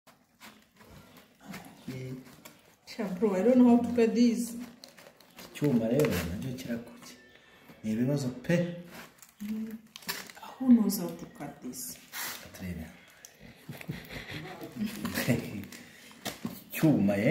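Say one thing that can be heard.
A knife scrapes and cuts through food.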